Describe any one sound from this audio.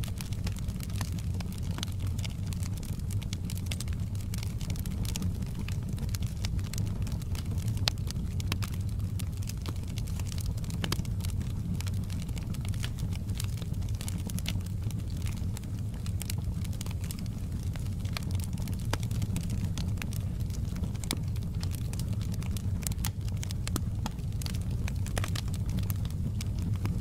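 Flames roar and hiss steadily.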